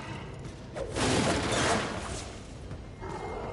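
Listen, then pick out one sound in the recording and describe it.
Wooden barrels smash apart.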